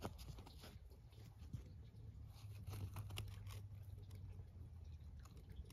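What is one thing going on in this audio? Fingers brush and rustle against a dry fungus close by.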